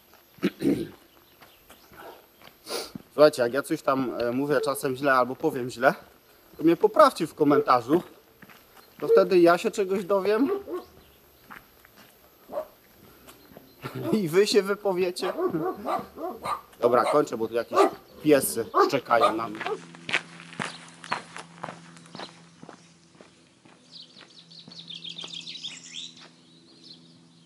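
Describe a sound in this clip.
Footsteps crunch on a gravel track.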